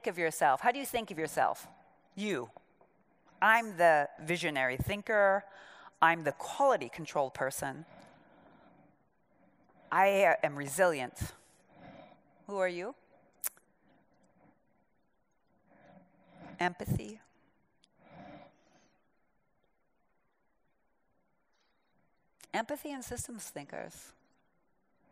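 A woman speaks through a microphone in a large hall, with pauses between phrases.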